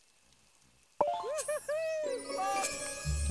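A bright, cheerful jingle of chimes plays.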